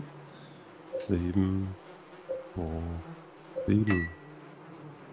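Keypad buttons beep as they are pressed.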